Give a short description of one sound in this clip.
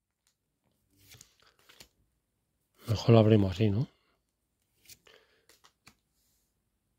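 Trading cards softly slide and flick against each other in the hands.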